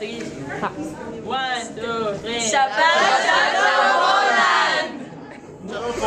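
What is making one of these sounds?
A group of young men and women sing and cheer together close by.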